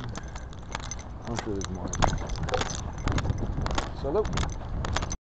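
Wind rumbles steadily across a moving bicycle.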